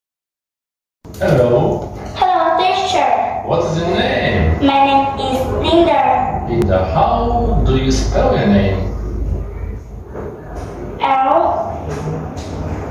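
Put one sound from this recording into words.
A young girl answers in a small voice close by.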